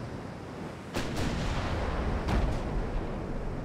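Heavy naval guns fire in loud booming blasts.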